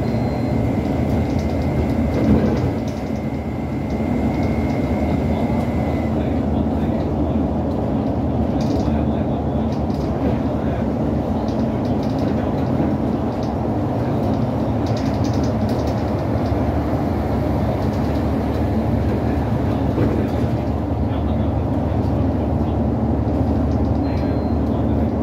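A bus rattles and creaks as it rides.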